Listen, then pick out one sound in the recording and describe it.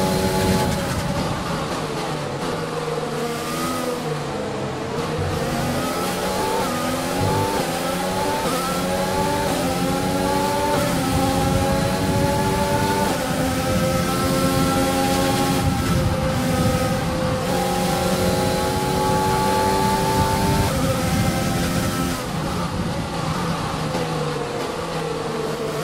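A racing car engine whines at high pitch, rising through the gears and dropping as it shifts.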